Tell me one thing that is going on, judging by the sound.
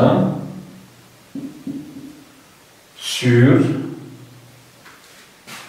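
A man speaks calmly nearby, explaining.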